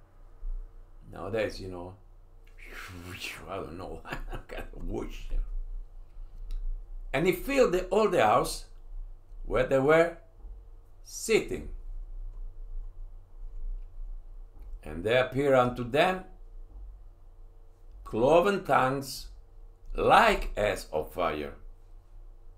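An elderly man reads aloud slowly through a microphone, with long pauses.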